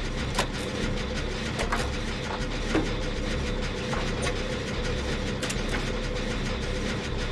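A machine engine clanks and rattles steadily.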